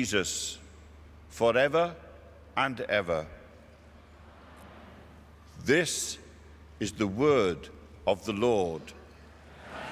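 An older man speaks slowly and formally through a microphone in a large echoing hall.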